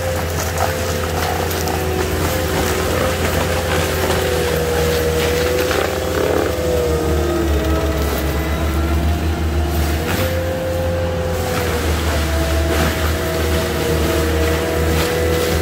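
A mulcher head grinds and chews through brush and wood.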